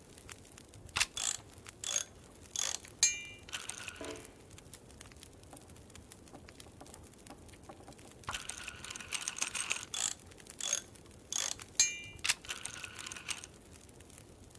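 Metal clinks and scrapes as a lantern is repaired.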